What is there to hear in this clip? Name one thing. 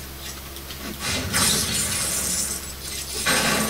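An explosion bursts loudly from a television speaker.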